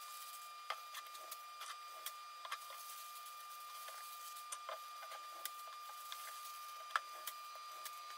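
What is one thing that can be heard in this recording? A metal bowl clinks on a table.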